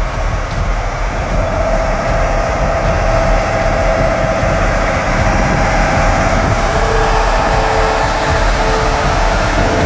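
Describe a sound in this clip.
Water splashes and surges around a bus's wheels.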